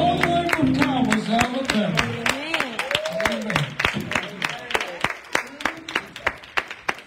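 A man sings into a microphone, heard through loudspeakers in an echoing room.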